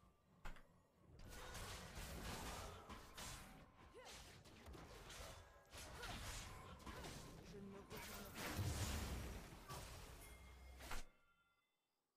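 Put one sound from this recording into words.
Video game combat effects whoosh and clash.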